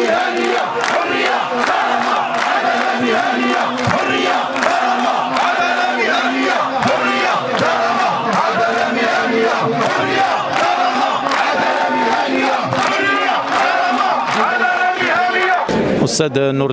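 A large crowd of men and women chants loudly in unison outdoors.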